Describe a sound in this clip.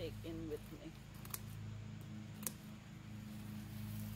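Cut herbs rustle as they are dropped into a basket.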